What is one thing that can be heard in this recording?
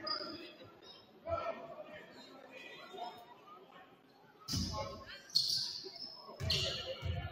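A crowd murmurs in the stands.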